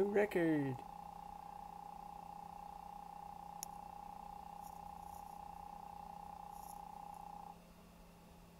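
A steady electronic beeping tone rings as a points tally counts down.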